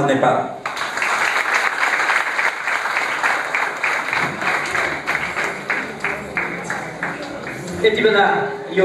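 A group of people applaud steadily.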